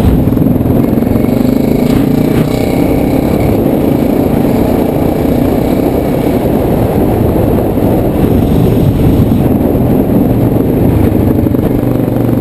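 A quad bike engine rumbles loudly up close.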